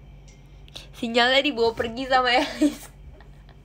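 A young woman laughs loudly, close to the microphone.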